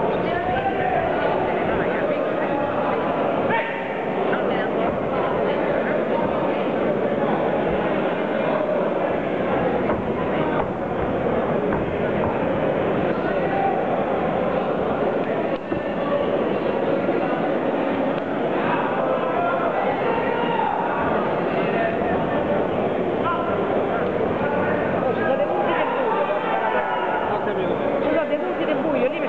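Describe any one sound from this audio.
A crowd in a large echoing hall shouts and cheers steadily.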